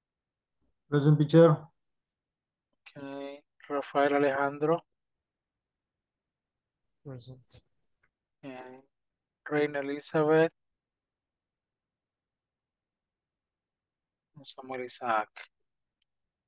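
A man speaks through an online call, in short bursts with pauses.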